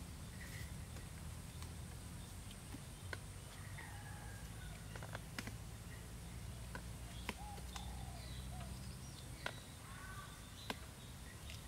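Thin sticks click and tap together.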